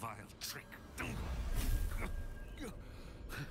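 A magical spell whooshes and crackles.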